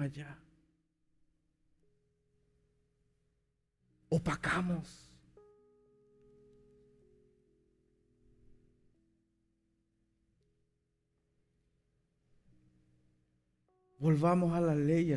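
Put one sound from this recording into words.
Soft keyboard chords play quietly underneath.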